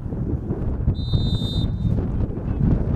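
A referee's whistle blows once, short and shrill.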